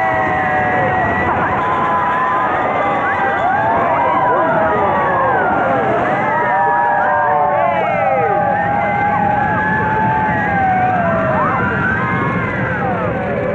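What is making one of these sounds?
Many people scream on a fast ride.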